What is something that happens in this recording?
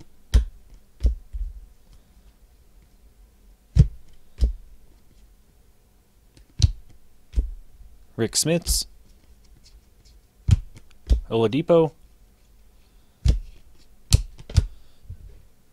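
Cards snap and slap together as hands handle them.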